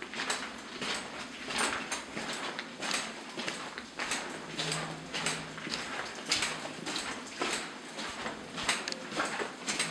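A train rumbles and rattles along the tracks through an echoing tunnel.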